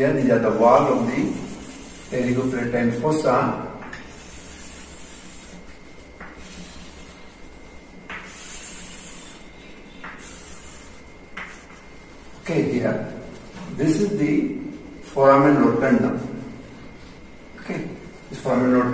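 A middle-aged man speaks calmly, close by, explaining.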